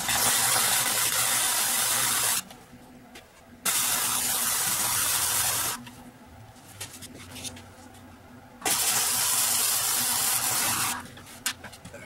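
An arc welder crackles and hisses in loud bursts.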